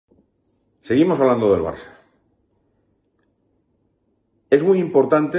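A middle-aged man speaks with animation close to a microphone, with pauses.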